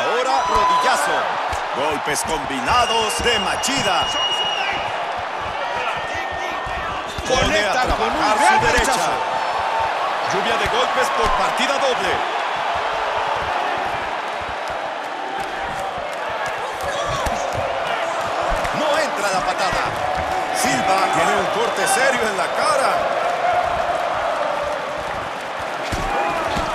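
Punches and kicks land with dull thuds.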